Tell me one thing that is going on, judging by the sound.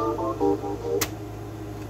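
A button on a portable stereo clicks.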